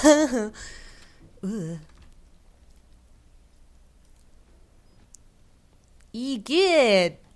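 A young woman cries out in fright into a close microphone, in short bursts.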